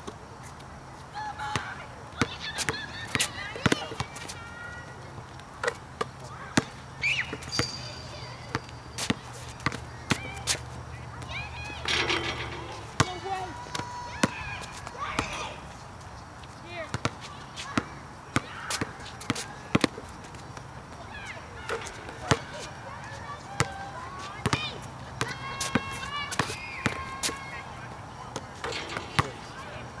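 A basketball bounces on hard pavement outdoors.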